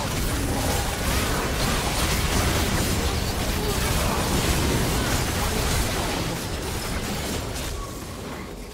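Magic spells blast, whoosh and crackle in a hectic fight.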